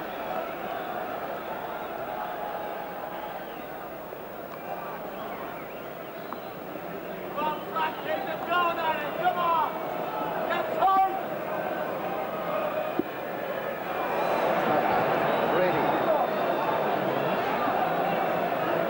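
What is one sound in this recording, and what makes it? A large crowd murmurs and cheers in a stadium, growing louder.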